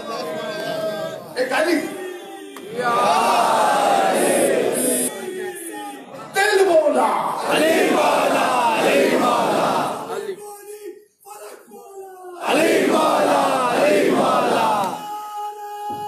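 A man recites passionately into a microphone, his voice ringing through loudspeakers in a reverberant hall.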